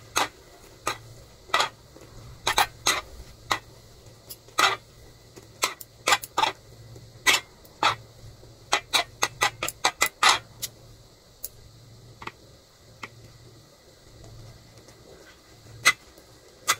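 Metal tongs click and scrape against a pan.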